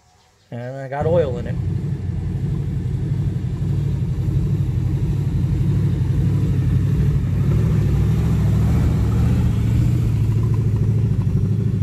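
A buggy engine rumbles loudly as it drives slowly past.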